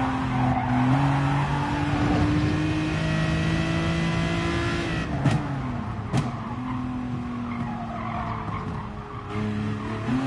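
A racing car engine roars at high revs, then drops in pitch as the car brakes.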